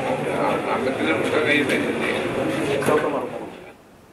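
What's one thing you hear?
Men and women chat in a murmur nearby.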